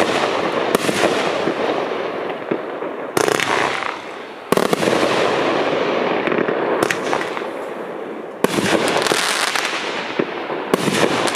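Fireworks explode with sharp bangs overhead.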